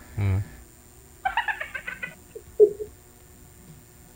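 A woman laughs softly over an online call.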